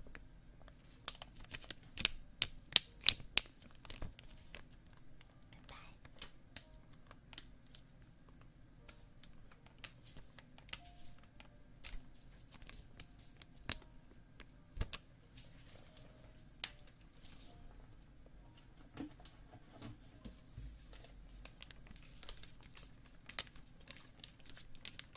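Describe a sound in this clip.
A young woman whispers softly and closely into a microphone.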